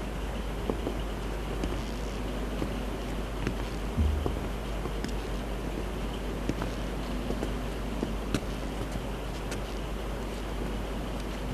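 Hand drums are struck in a loose rhythm.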